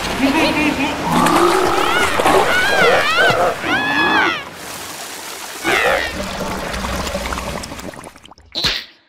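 High squeaky voices chatter and squeal excitedly.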